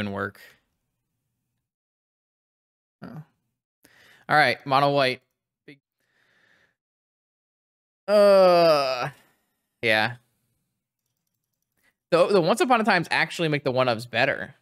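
A young man talks with animation close to a microphone, in short bursts.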